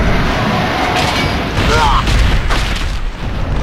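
A sword swings through the air with a whoosh.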